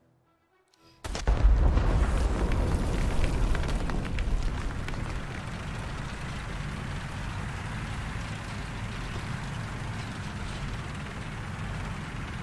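Tank tracks clatter and squeak over the ground.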